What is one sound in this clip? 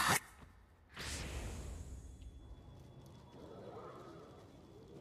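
A magical glow swells with a rushing whoosh.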